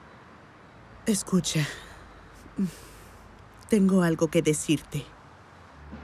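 A woman speaks tensely up close.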